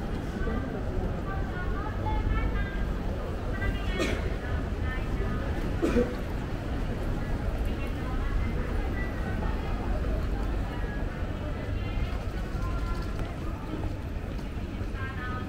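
Voices of passers-by murmur nearby.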